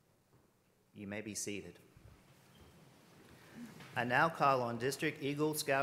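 A man speaks calmly into a microphone in a large echoing hall.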